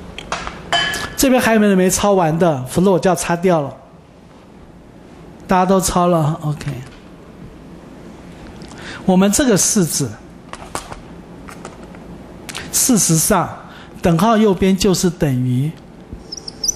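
A man lectures into a headset microphone in short, calm bursts.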